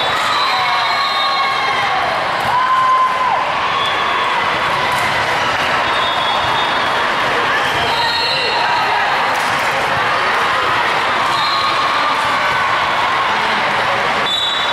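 A crowd of girls and adults chatters in a large echoing hall.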